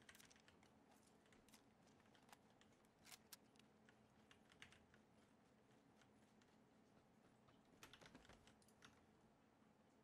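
Footsteps swish through dry grass.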